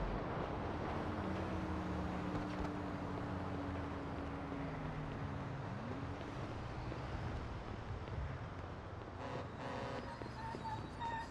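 A large vehicle's engine hums as it drives by on a road.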